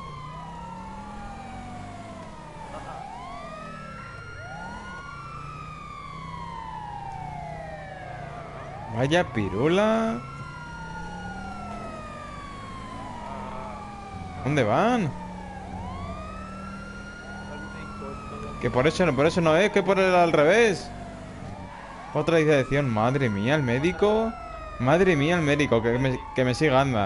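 A police siren wails steadily, rising and falling.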